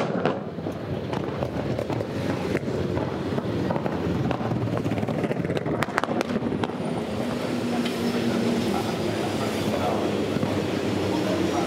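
Race car engines rumble and roar.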